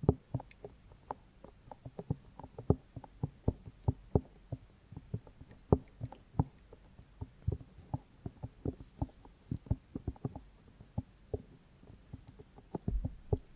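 Fingers tap and scratch on a microphone's ear-shaped covers, close and soft.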